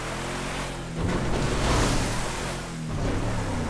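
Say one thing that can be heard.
Water splashes under a truck's tyres.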